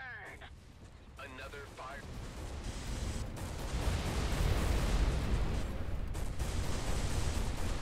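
Laser weapons fire in rapid bursts.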